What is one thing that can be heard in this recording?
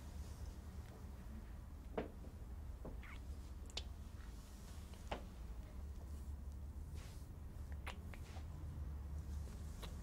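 A couple kisses softly, with quiet lip smacks and breaths.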